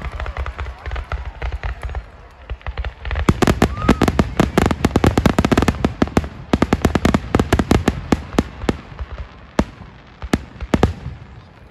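Fireworks shells burst with sharp bangs outdoors.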